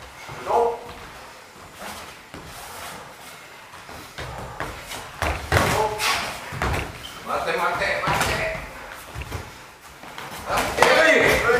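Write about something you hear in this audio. Bare feet thud and shuffle on a mat.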